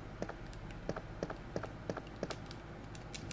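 Footsteps thud quickly and evenly on a hard floor.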